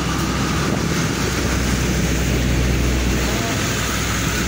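A heavy lorry rumbles past.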